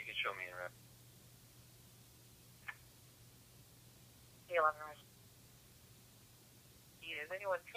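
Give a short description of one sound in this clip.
Short bursts of radio chatter come through a scanner's small loudspeaker.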